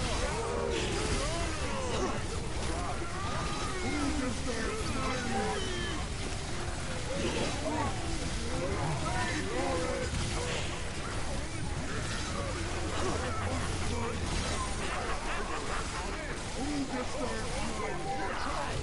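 Magic blasts and explosions crackle and whoosh.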